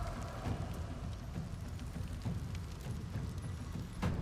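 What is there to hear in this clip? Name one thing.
Flames crackle and hiss.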